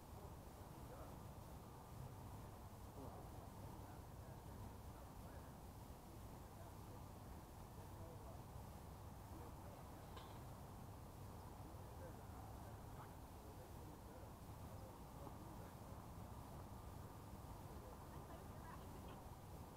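Tennis balls are struck with rackets some distance away.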